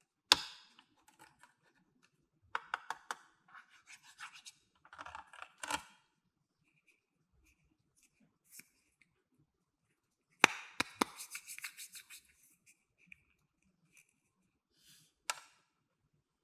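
Plastic toy parts click and snap as they are handled.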